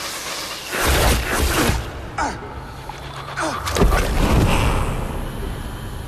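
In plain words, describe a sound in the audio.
Arrows thud into a body and targets.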